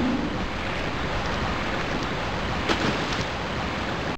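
A waterfall pours and splashes into a pool.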